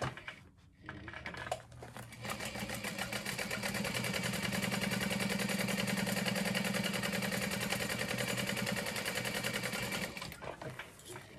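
A sewing machine whirs rapidly as it stitches.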